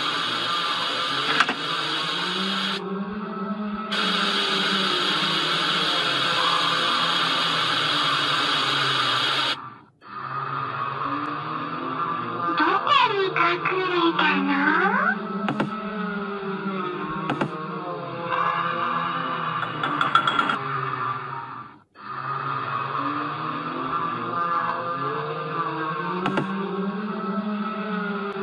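Eerie game music plays from a tablet speaker.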